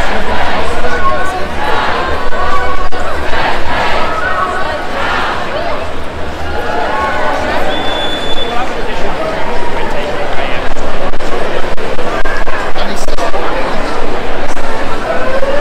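Men and women in a crowd shout and chant together.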